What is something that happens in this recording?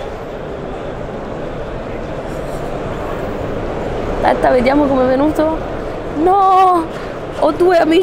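A crowd murmurs in the background of a busy, echoing hall.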